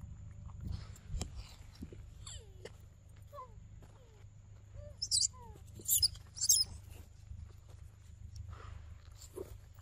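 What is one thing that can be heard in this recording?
A monkey chews on a piece of fruit close by.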